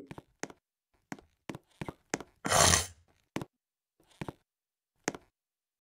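Quick footsteps patter in a game.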